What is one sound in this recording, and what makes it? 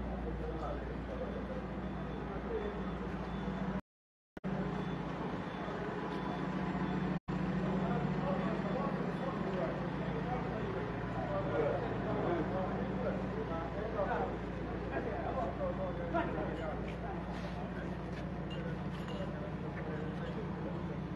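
A backhoe engine rumbles steadily nearby.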